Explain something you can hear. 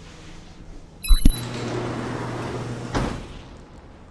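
A heavy metal door clanks and slides open with a rumble.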